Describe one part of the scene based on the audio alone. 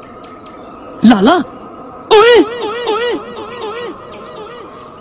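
Two young men shout together loudly nearby, with a strong repeating echo.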